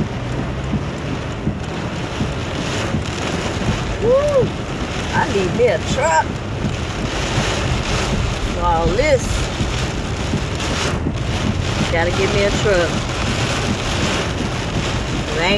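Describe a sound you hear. Heavy rain pounds steadily on a car roof and windshield.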